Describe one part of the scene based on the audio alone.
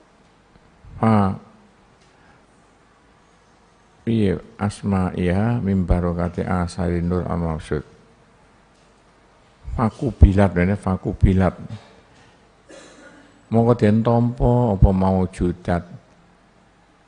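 An elderly man reads aloud in a chanting voice through a microphone, in bursts with pauses.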